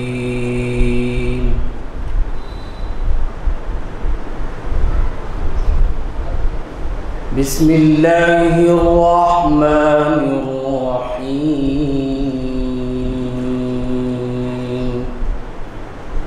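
A man recites in a long, melodic chant through a microphone.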